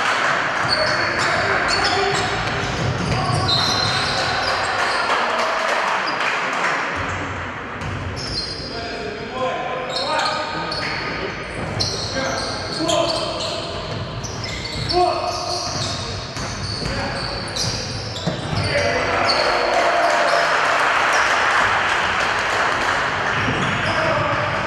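Spectators murmur and cheer in the background.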